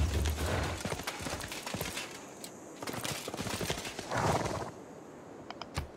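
Swords clash as two knights fight.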